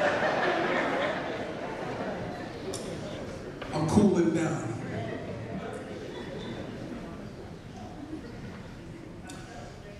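A man preaches emotionally through a microphone.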